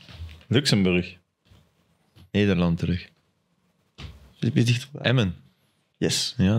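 A young man speaks casually and closely into a microphone, in short bursts with pauses.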